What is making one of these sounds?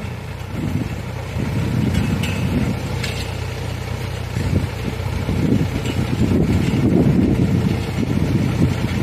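A towed implement rattles and scrapes over soil.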